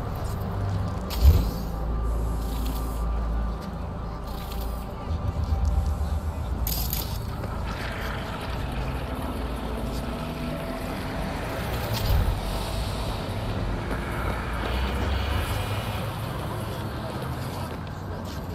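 Car engines hum in steady city traffic.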